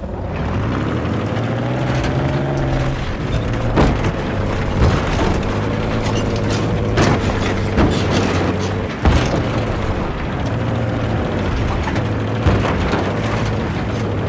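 A tank engine rumbles and whines steadily.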